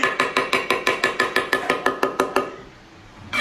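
A cleaver chops rapidly and rhythmically on a wooden board.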